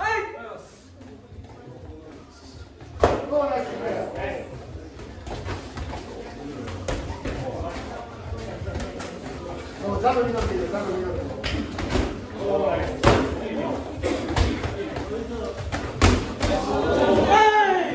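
A man calls out instructions nearby.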